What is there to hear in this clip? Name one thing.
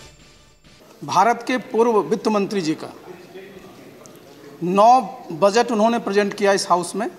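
A middle-aged man speaks into a microphone with animation.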